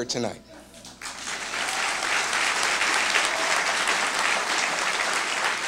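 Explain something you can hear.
A large audience laughs.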